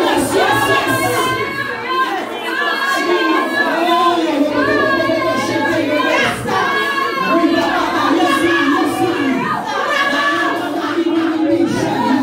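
A crowd of people sings together.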